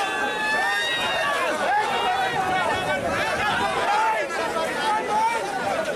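A large crowd of men shouts and cheers loudly outdoors.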